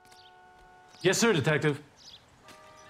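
Another man answers briefly and politely.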